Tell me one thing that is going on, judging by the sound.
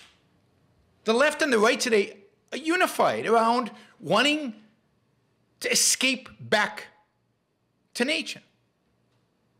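An older man speaks calmly into a close microphone, in short phrases with pauses.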